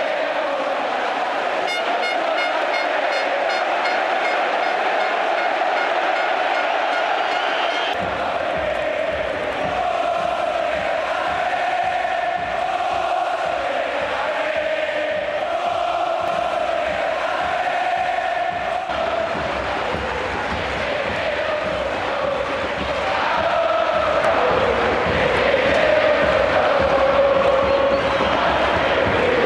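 A large stadium crowd chants in unison in an open stadium.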